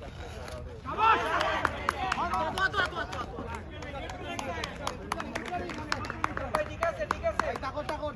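Several men shout and cheer outdoors.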